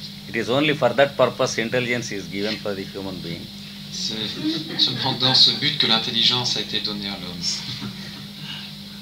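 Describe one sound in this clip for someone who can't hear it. An elderly man speaks calmly through an old, hissy recording.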